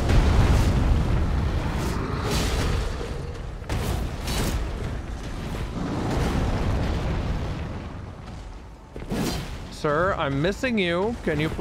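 A sword clangs against a beast.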